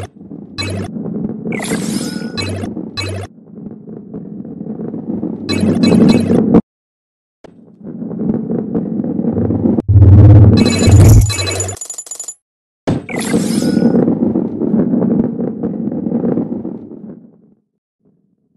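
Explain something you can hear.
A ball rolls along a track with a low rumble.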